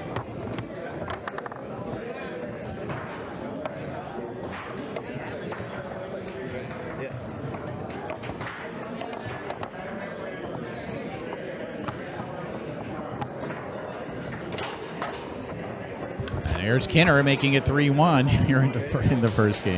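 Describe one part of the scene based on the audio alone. Plastic foosball figures knock a ball against the table.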